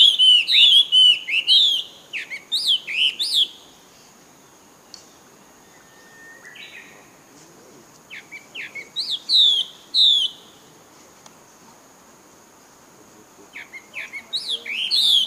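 A baby monkey squeaks and chirps shrilly in repeated bursts.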